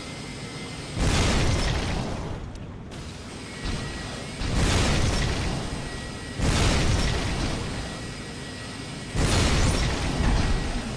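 Explosions boom in short bursts.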